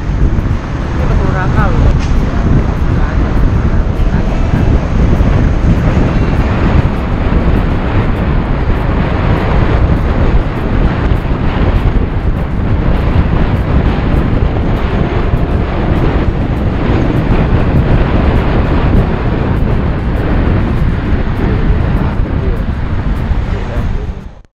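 Wind rushes loudly past a moving motorbike.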